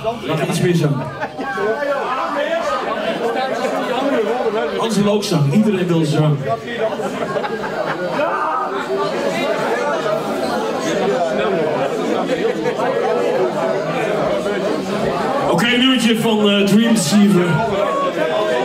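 A man growls into a microphone through loudspeakers.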